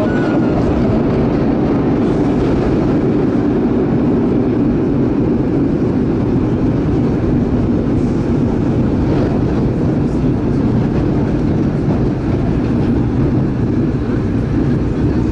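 A train rumbles steadily along the tracks through an echoing tunnel.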